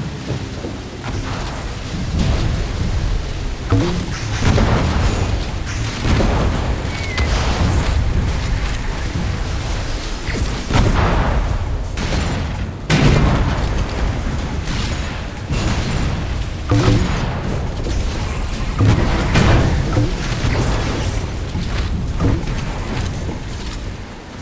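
Water splashes and sprays around a speeding boat.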